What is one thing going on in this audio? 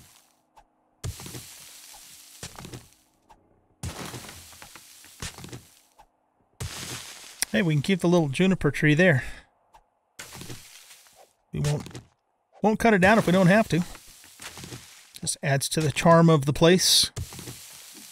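A shovel digs repeatedly into dirt and rock.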